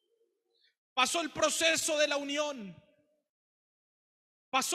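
A young man speaks with feeling into a microphone, echoing slightly in the room.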